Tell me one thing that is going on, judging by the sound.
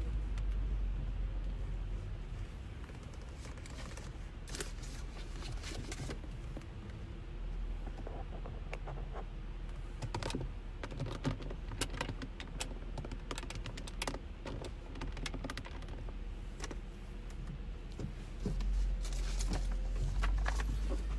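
Wind rumbles past an open car.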